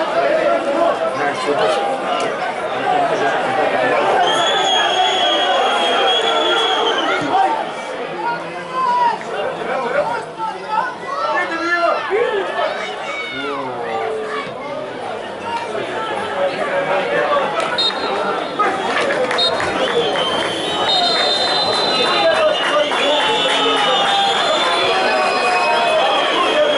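A large crowd of spectators shouts and chants throughout, outdoors.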